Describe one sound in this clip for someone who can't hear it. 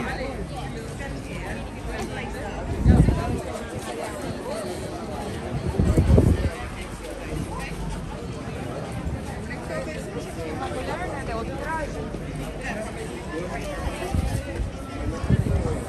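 A crowd of tourists chatters nearby outdoors.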